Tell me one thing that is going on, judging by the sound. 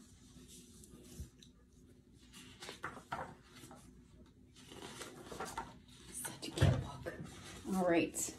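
Paper pages rustle as a book is leafed through.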